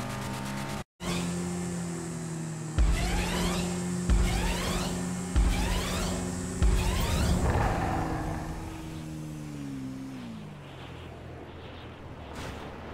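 A motorcycle engine revs hard, climbing through the gears again and again.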